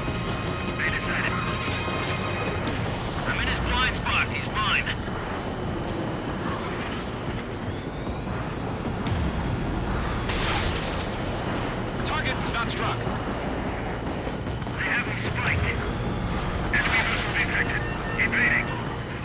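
Missiles whoosh past.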